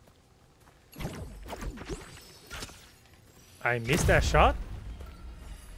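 A man talks with animation into a microphone, close by.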